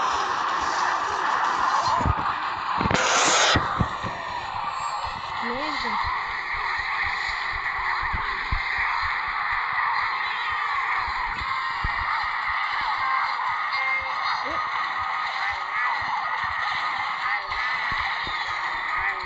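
Upbeat game music plays steadily throughout.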